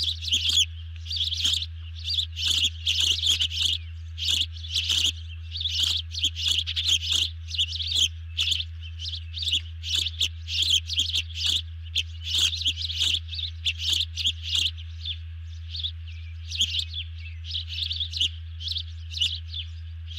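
A large bird tears at a fish with its beak.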